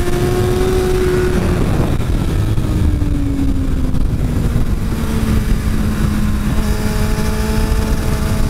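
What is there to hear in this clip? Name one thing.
A motorcycle engine roars at high speed, its pitch dropping and then rising again as it shifts gears.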